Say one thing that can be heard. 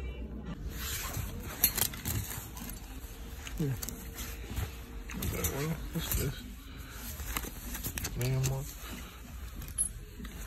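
Clothing rustles as hands brush through hanging jackets.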